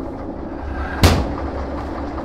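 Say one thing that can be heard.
A metal door clanks shut.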